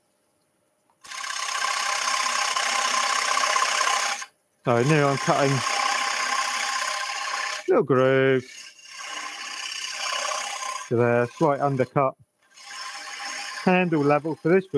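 A wood lathe gouge scrapes and hisses against spinning wood.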